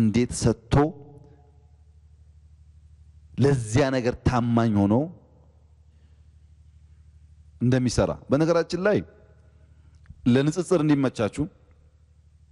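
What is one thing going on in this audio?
A man speaks calmly into a microphone, in phrases broken by pauses.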